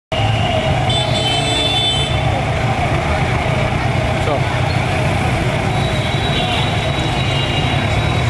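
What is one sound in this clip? A crowd chatters in a busy street.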